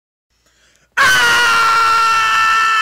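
A young man shouts loudly up close.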